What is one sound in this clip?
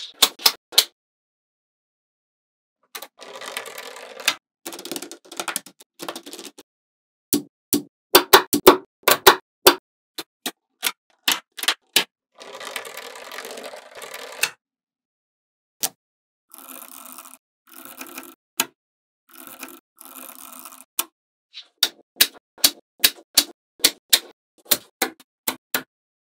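Small metal magnetic balls click sharply together.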